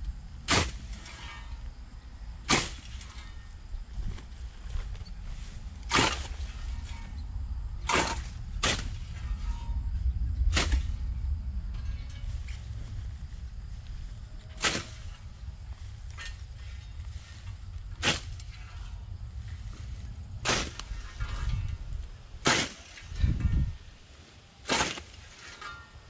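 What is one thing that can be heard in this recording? A blade swishes through tall grass in sharp strokes.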